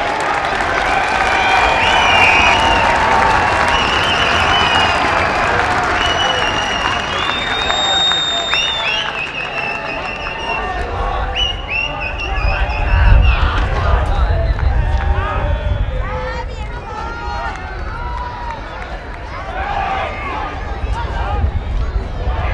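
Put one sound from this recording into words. A large outdoor crowd cheers and murmurs.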